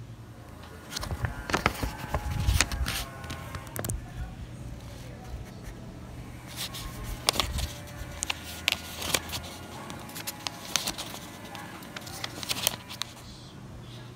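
Sheets of paper rustle and crinkle as fingers bend them.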